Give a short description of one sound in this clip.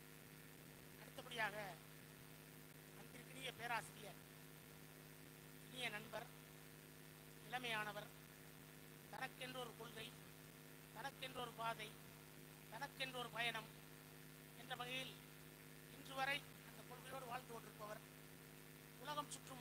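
A man speaks with animation over a loudspeaker, in short bursts.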